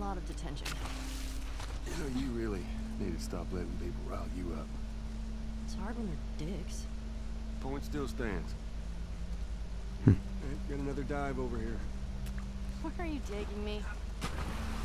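A young woman speaks casually.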